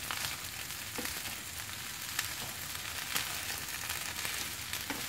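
Food sizzles in a hot frying pan.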